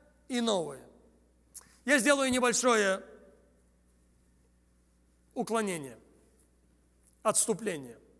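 A man speaks with animation into a microphone, heard through loudspeakers in a large hall.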